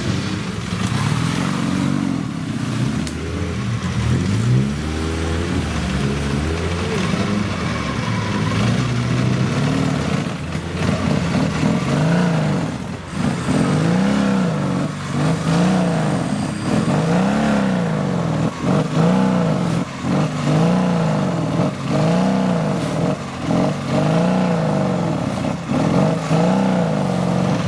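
A motorcycle engine revs hard, rising and falling over and over.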